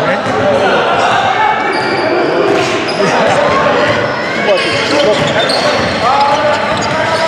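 Men shout and call out to each other across the court.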